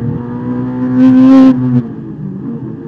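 Tyres squeal briefly on the track.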